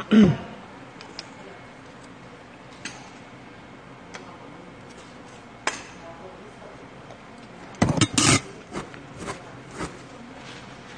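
Metal bowls and utensils clink and clatter on a table.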